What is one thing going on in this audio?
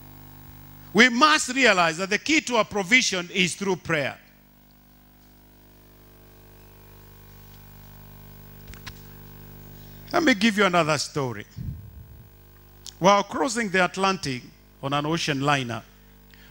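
A man preaches with animation through a microphone and loudspeakers, pausing between bursts.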